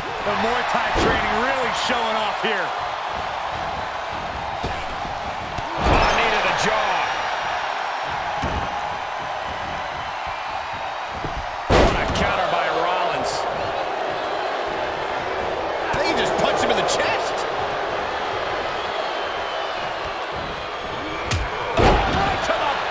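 Heavy bodies slam down hard onto a wrestling mat with loud thuds.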